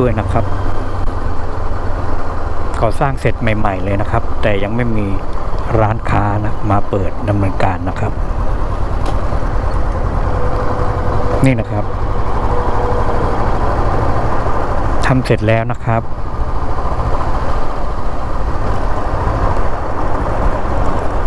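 A motorcycle engine hums steadily and rises and falls in pitch as the rider shifts gears.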